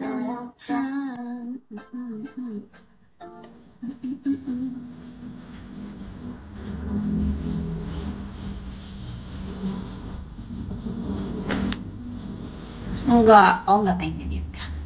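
A young woman talks casually, close to a microphone.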